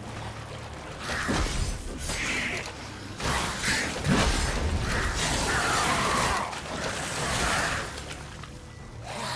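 Blades clash and strike in a loud fight.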